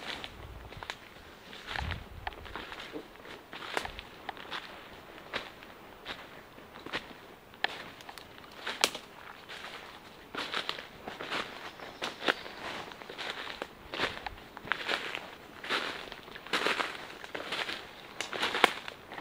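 Footsteps crunch and rustle through dry leaves on the ground.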